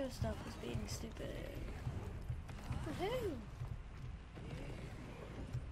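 A boy talks with animation, close to a microphone.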